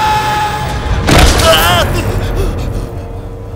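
A man screams.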